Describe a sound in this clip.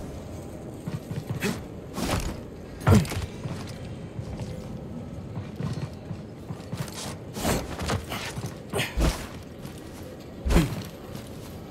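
Footsteps run across a metal floor.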